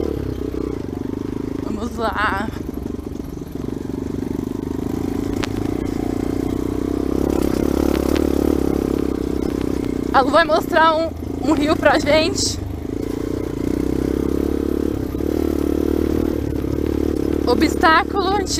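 A dirt bike engine runs as the bike rides along.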